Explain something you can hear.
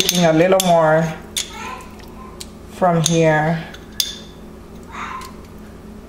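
A metal spoon scrapes and knocks against a turkey.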